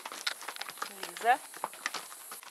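A woman speaks nearby outdoors.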